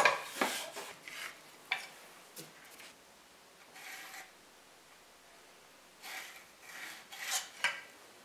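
A pencil scratches along wood.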